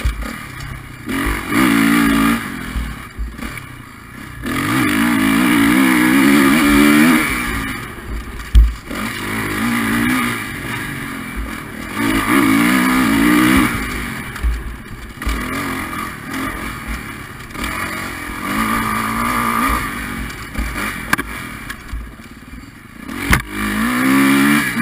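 A dirt bike engine revs up and down close by, rising and falling in pitch.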